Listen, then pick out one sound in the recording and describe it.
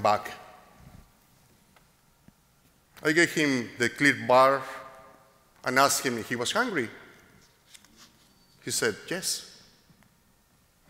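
A middle-aged man speaks slowly and solemnly through a microphone, with pauses, in a large echoing hall.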